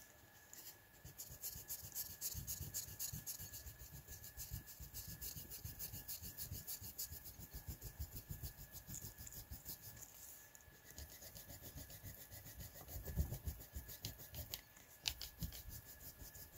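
An eraser rubs quickly back and forth across paper.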